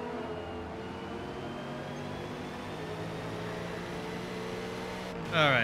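A race car engine drones steadily at high revs.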